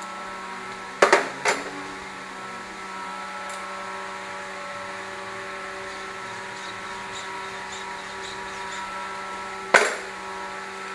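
Metal tools clank sharply against an engine block.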